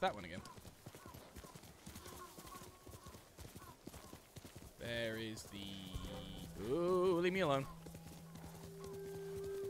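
A horse gallops, its hooves thudding over soft ground.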